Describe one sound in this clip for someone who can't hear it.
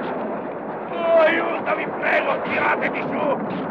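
A man shouts in alarm.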